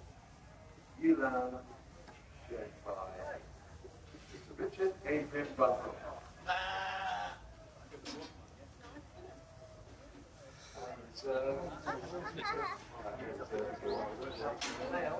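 A small girl babbles and chatters nearby.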